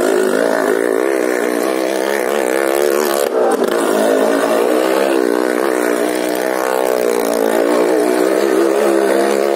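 A motorcycle engine roars and revs loudly as the bike circles close by.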